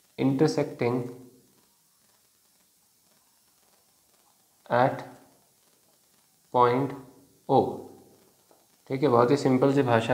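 A young man speaks calmly and slowly in short phrases, close to a microphone.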